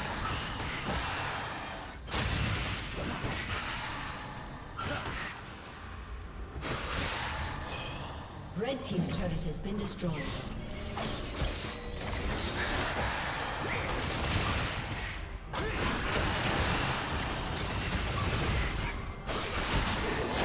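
Video game spell effects and hits clash in a busy battle.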